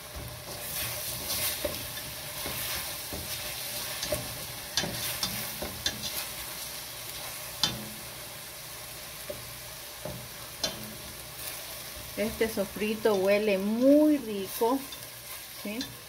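A spatula scrapes and knocks against a metal pan.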